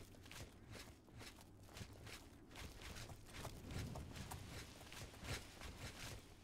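Footsteps tread steadily on a stone path.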